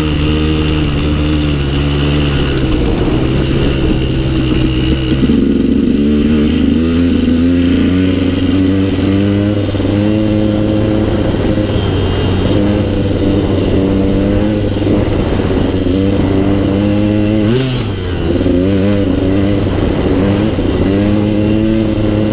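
A dirt bike engine revs loudly up close, rising and falling as gears change.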